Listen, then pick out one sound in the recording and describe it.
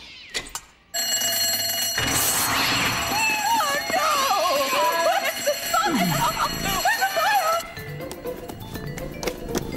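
An alarm bell rings loudly and steadily.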